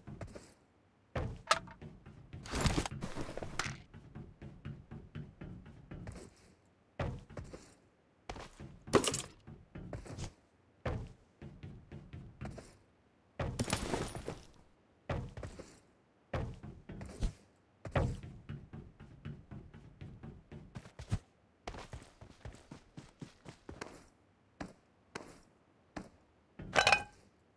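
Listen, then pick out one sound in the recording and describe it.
Running footsteps clang on a metal roof.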